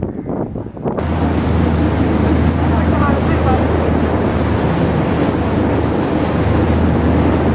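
Water churns and rushes in a foamy wake.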